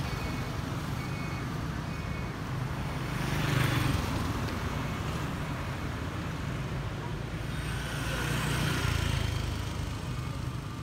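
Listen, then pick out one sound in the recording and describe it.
Cars drive past close by on a paved road, their tyres hissing as they swell and fade.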